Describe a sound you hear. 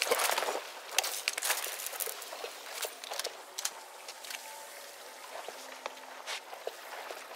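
Footsteps crunch over debris on a hard floor.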